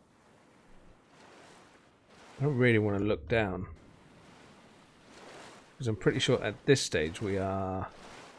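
Ocean waves slosh gently around a swimmer.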